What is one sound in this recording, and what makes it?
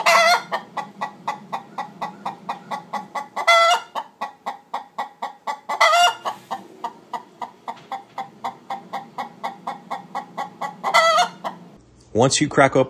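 A hen clucks in a quick, steady rhythm.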